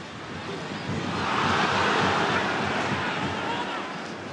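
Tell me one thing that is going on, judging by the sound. A stadium crowd roars loudly as a shot goes toward goal.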